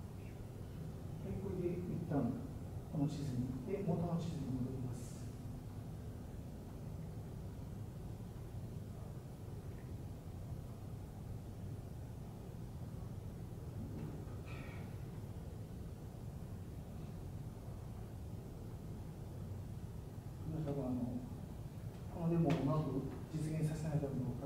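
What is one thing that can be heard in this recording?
A man speaks calmly in a large room, heard from a distance.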